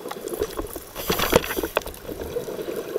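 Air bubbles gurgle and rumble loudly underwater.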